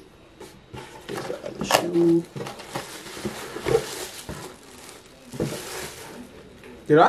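Paper rustles.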